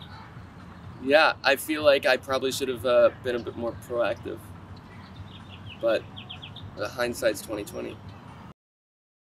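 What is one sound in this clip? A young man speaks calmly close by, outdoors.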